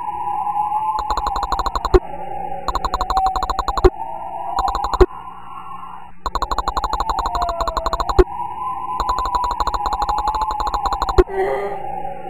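A combination dial clicks rapidly as it turns.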